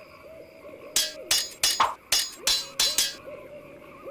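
Swords clash and clang in quick strikes.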